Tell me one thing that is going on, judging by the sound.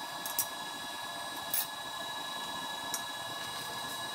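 A welding helmet clicks as it is flipped up.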